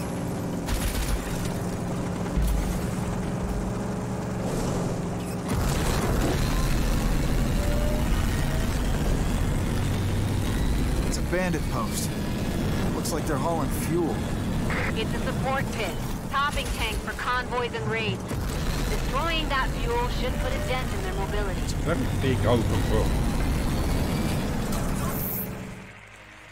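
A buggy engine roars steadily.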